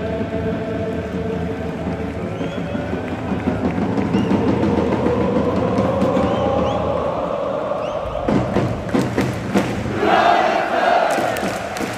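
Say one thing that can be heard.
A large stadium crowd sings and chants loudly in unison.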